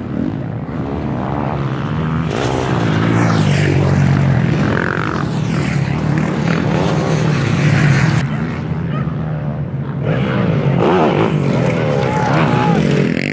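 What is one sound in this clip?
Dirt bike engines roar and rev up close by.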